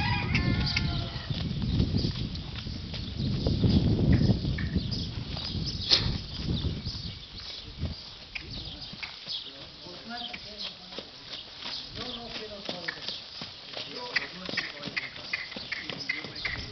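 A horse's hooves thud on soft sand in a steady canter.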